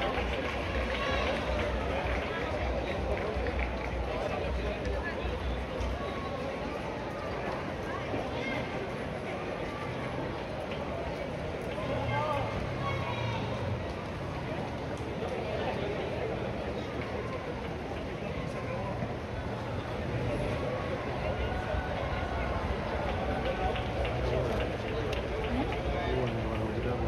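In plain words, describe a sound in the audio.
A crowd of runners chatters and calls out outdoors.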